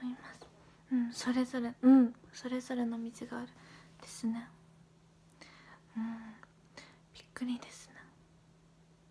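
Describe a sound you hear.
A young woman talks softly and close to a microphone.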